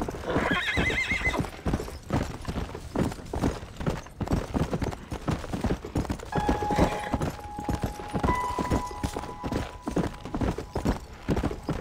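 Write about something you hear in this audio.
Horse hooves thud quickly and steadily on a dirt trail.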